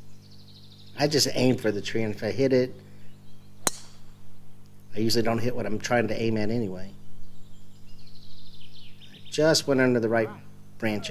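A man talks nearby in a calm, casual way.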